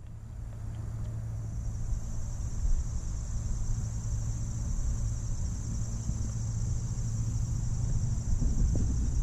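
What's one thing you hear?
Water swishes softly as a hand moves through a shallow stream.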